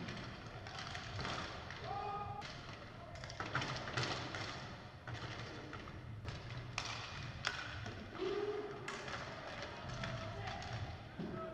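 Skates rumble and scrape across a hard floor in a large echoing hall.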